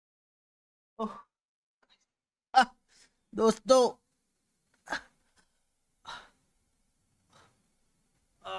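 A young man groans and cries out in pain in short bursts, close by.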